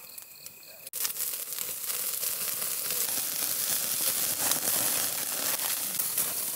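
Flames roar and crackle under a grill.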